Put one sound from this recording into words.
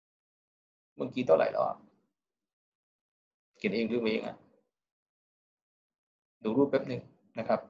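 A young man speaks calmly into a microphone in short phrases with pauses.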